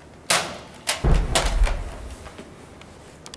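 A body rolls over and thumps softly on the floor.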